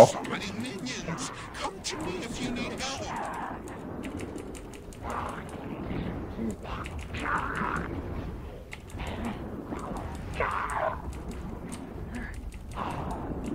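Magic spells blast and crackle in a fight.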